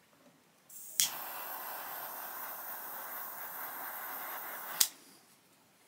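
Pliers snap sharply on a metal clasp.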